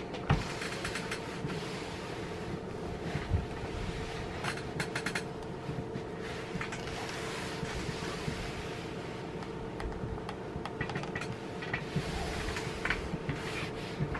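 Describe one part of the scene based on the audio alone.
An iron slides and swishes over cloth.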